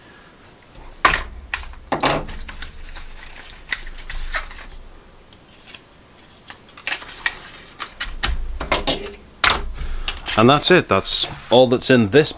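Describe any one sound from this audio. Cardboard box parts knock and scrape against each other.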